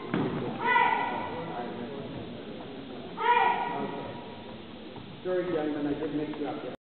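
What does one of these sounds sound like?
Children give short, sharp shouts in a large echoing hall.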